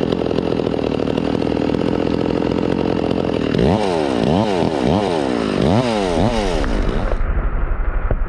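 A chainsaw revs as it cuts through a tree trunk.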